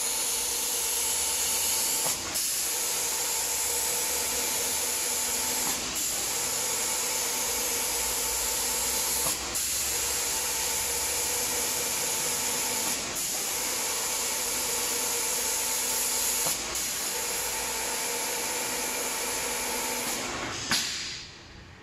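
A spraying machine hisses loudly and steadily, pausing briefly every few seconds.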